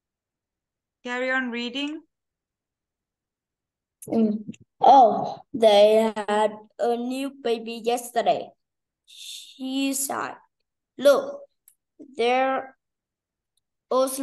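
A woman speaks in short phrases over an online call.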